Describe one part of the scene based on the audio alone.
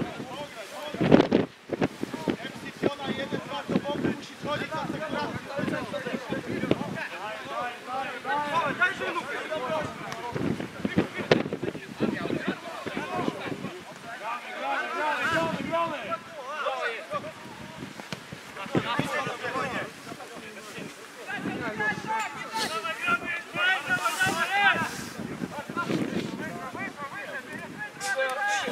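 Football players shout to each other across an outdoor pitch.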